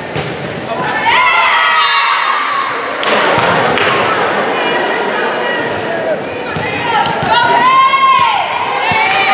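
Spectators cheer and shout in a large echoing hall.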